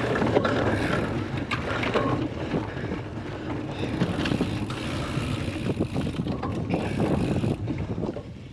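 Wind rushes loudly past close by, outdoors.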